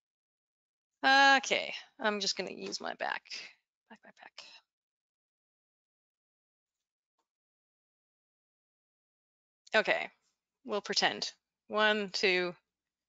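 A young woman speaks calmly into a close microphone.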